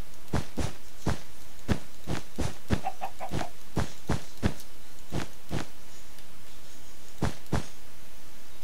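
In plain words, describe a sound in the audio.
Wool blocks crunch as they are broken in a video game.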